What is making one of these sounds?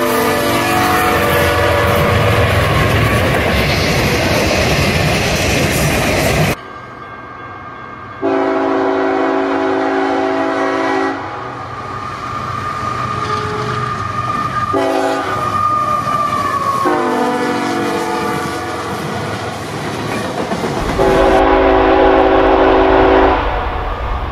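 A locomotive horn blasts loudly several times.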